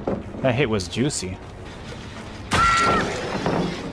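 A wooden pallet cracks and splinters as it is smashed.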